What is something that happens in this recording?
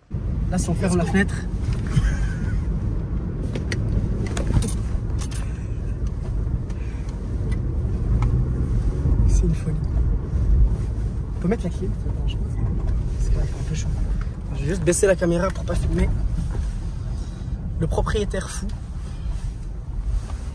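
A car's engine and tyres rumble steadily on sand.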